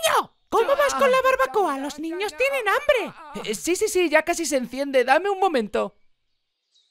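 A woman speaks with animation, close and clear.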